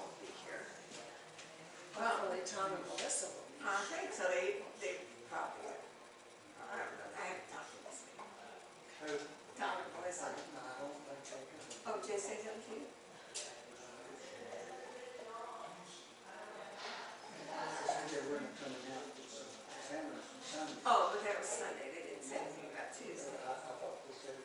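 A man talks calmly from across a room with a slight echo.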